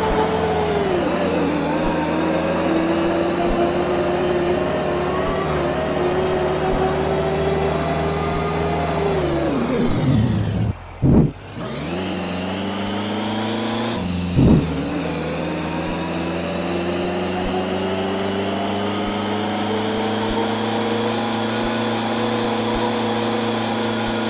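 A vehicle engine hums steadily, slowing down and then speeding up again.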